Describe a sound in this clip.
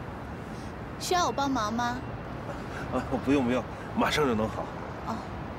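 A man speaks in a friendly way, close by.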